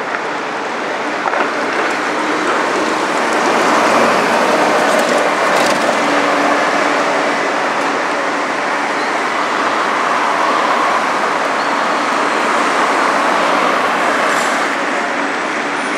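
City traffic roars steadily nearby.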